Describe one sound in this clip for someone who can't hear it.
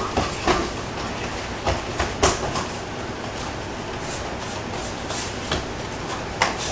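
Bare feet shuffle and stamp on a padded mat.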